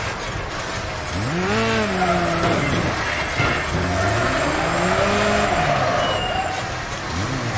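A small racing buggy's engine revs and whines.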